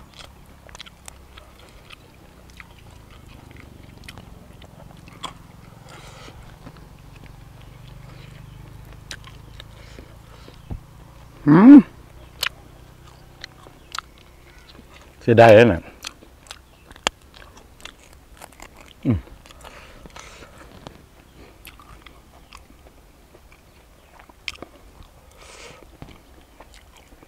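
A man chews noisily close by, crunching small bones.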